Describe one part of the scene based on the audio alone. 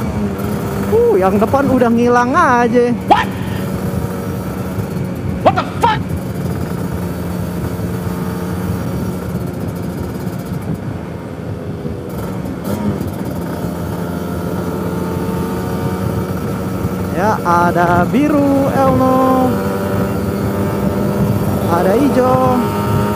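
A motorcycle engine revs up sharply several times.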